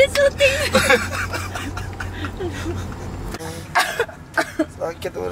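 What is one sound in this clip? A young man laughs loudly up close.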